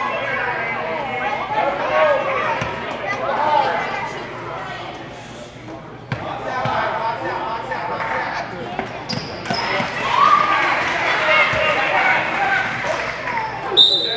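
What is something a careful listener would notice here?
Spectators chatter and cheer in an echoing gym.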